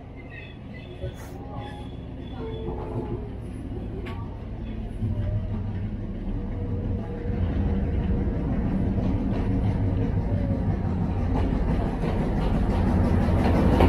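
A diesel train engine rumbles as it approaches and grows steadily louder.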